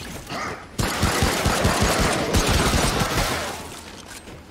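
Heavy blows and crashes burst out in a close fight.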